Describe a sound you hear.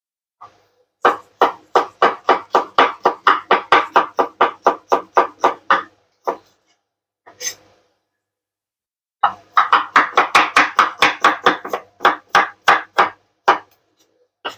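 A knife chops quickly on a wooden cutting board.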